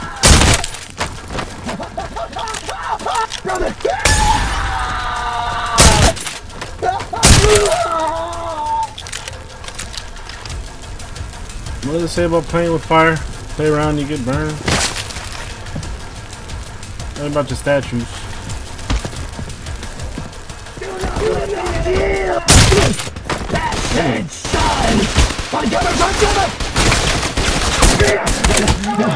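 Gunshots ring out loudly in bursts.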